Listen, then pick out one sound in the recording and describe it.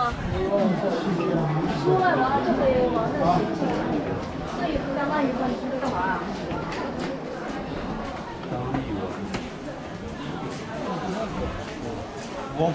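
Footsteps shuffle on stone paving.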